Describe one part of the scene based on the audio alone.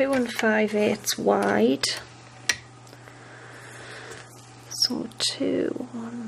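A paper trimmer blade slides down and cuts through card.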